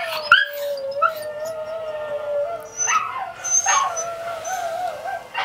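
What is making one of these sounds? A small dog whines in a long, high, wavering tone close by.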